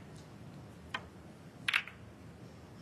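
Snooker balls clack together sharply.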